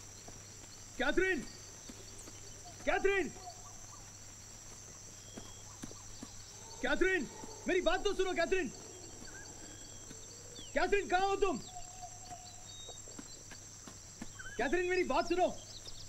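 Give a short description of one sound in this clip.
A man shouts out loudly, calling again and again.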